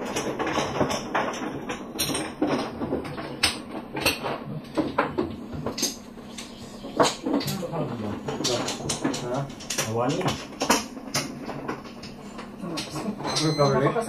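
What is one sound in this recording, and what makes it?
Plastic mahjong tiles clack and click against each other on a table.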